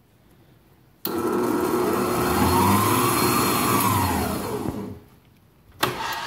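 An electric mixer motor whirs loudly, rising and then falling in pitch.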